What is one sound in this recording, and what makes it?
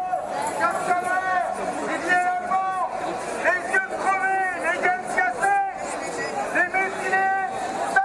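A crowd of men and women chants loudly in rhythm outdoors.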